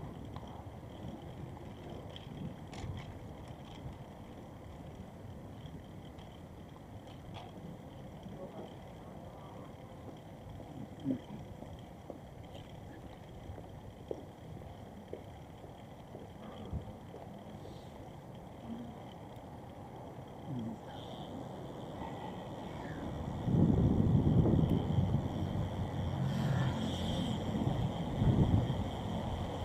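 Footsteps tap steadily on pavement while walking outdoors.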